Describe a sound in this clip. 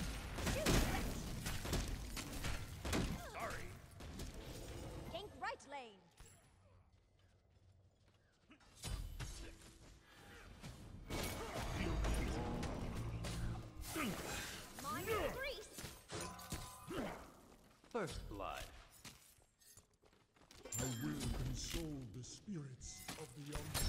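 Game combat effects clash and burst with spells and impacts.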